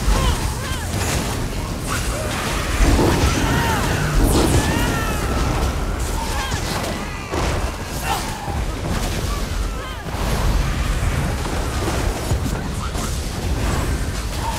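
Lightning crackles and zaps.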